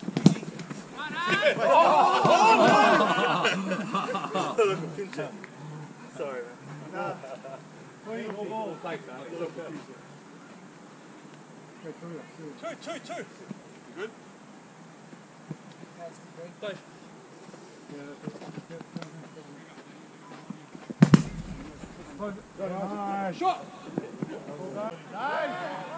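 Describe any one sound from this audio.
Men shout and call out to each other outdoors across an open pitch.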